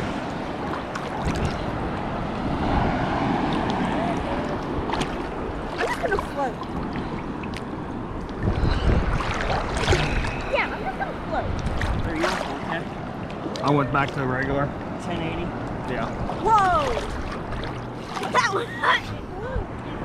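A teenage boy talks close by, calmly.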